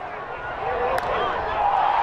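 A bat cracks sharply against a baseball.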